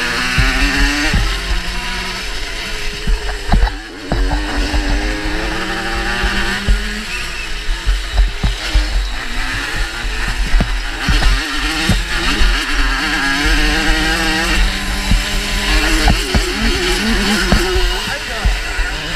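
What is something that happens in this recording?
A dirt bike engine revs hard and loudly up close, rising and falling in pitch.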